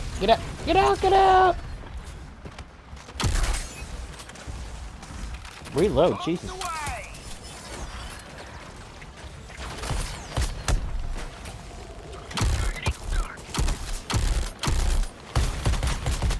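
Explosions boom with deep rumbles.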